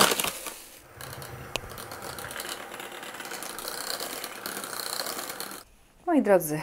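An electric hand mixer whirs steadily as its beaters whip cream.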